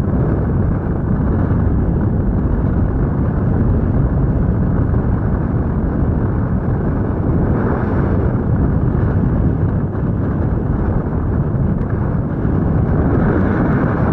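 Strong wind rushes and buffets loudly against a microphone.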